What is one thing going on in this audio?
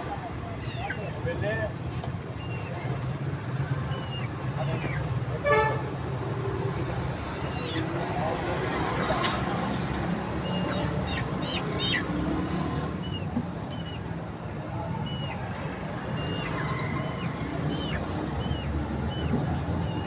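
Pigeons coo softly close by.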